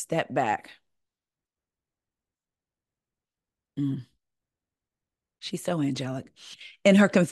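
A woman speaks calmly into a close microphone, with pauses.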